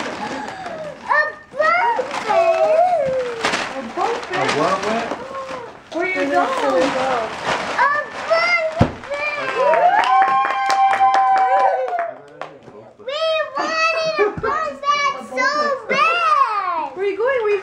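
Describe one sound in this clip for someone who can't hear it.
Young girls shriek and squeal excitedly nearby.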